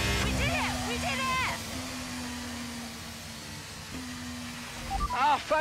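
A racing car engine drones at high speed, with its pitch sweeping up and down as it shifts gears.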